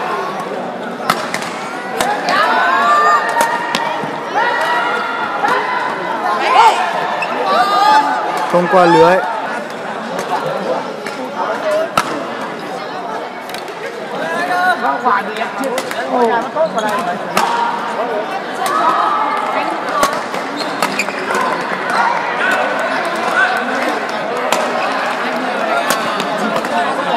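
Shuttlecocks are hit with rackets in a large echoing hall.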